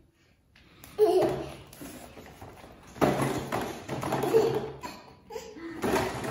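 A toddler claps small hands.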